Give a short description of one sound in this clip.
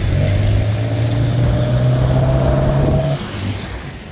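A truck engine roars past close by.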